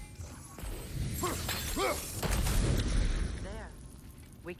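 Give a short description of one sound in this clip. A magical blast crackles and roars.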